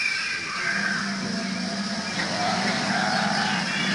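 Water splashes as a mechanical crocodile rises and opens its jaws.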